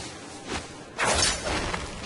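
A blade swooshes through the air.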